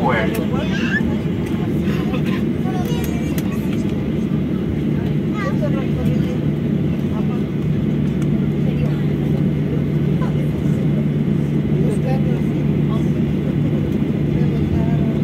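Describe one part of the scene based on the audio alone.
A jet engine roars steadily as an airliner taxis.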